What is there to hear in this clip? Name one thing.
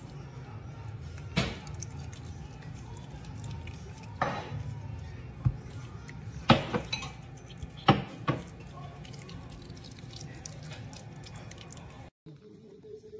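An otter chews and smacks wetly on food.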